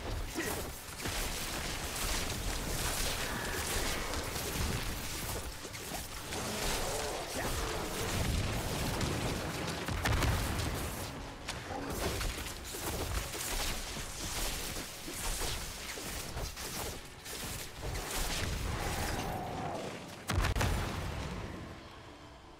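Game spells crackle and blast in quick bursts.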